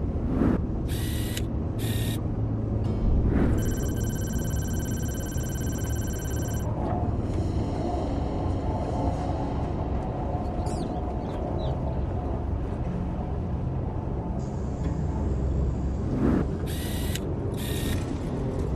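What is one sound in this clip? A game menu chimes as a window opens and closes.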